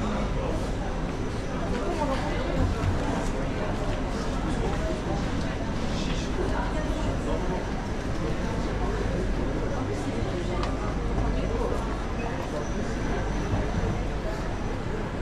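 Footsteps of many people echo on a hard floor.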